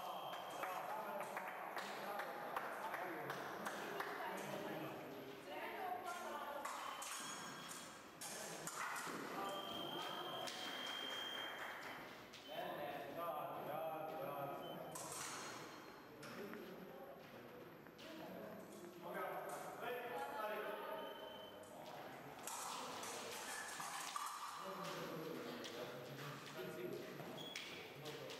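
Fencers' feet stamp and shuffle on the floor.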